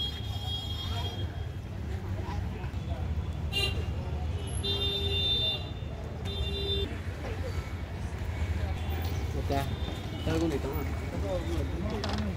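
Men and women chatter faintly in the background outdoors.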